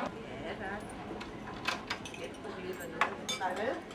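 Dishes and cups clink.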